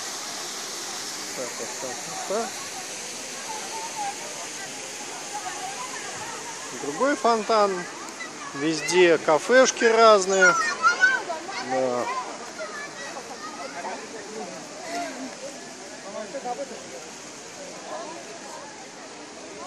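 A crowd murmurs outdoors in the open air.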